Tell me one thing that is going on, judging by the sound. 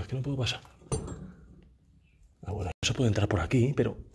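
A wooden hatch is lifted open with a knock.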